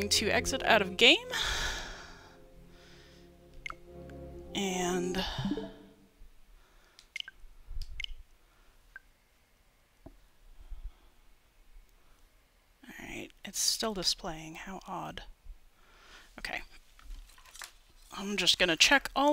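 A man talks with animation into a headset microphone, close up.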